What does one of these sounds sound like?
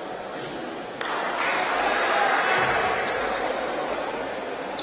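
A crowd cheers loudly for a moment.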